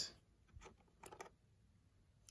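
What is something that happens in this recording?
A small metal ring clicks softly as it is lifted free.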